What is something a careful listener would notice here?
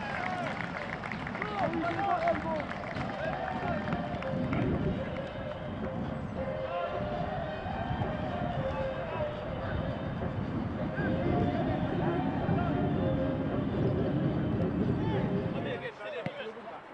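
A crowd of spectators murmurs and cheers outdoors.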